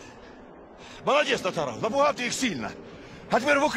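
A young man speaks with excitement.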